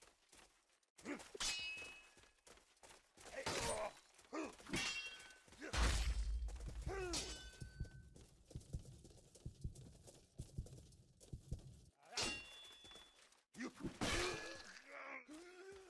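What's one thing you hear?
Steel swords clash and ring sharply, several times.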